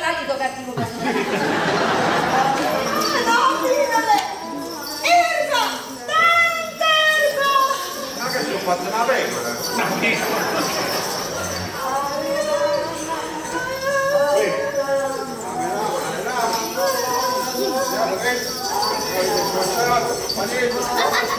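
Several women shout and talk excitedly over one another.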